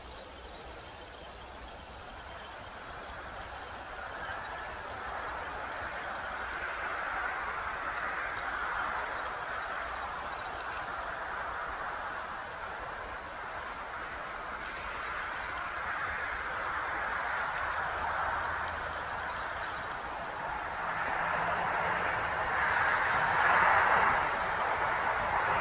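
A jet airliner rumbles faintly high overhead, slowly growing louder.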